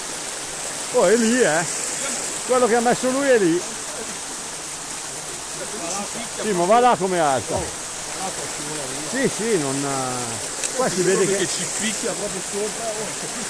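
A man calls out loudly nearby, in short bursts.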